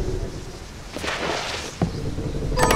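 A figure slides along the floor with a quick whoosh.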